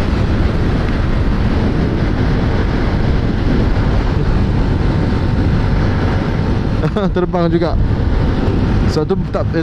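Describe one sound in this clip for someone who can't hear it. Wind roars steadily past a moving scooter.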